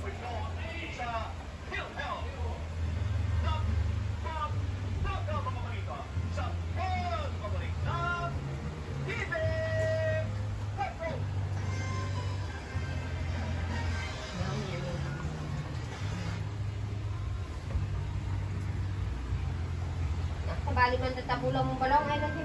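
An elderly woman talks casually nearby.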